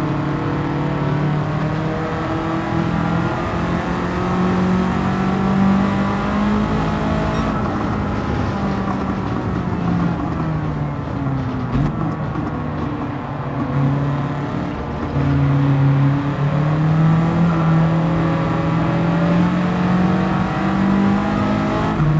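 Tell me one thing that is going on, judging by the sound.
A racing car engine roars steadily, rising and falling in pitch as it shifts gears.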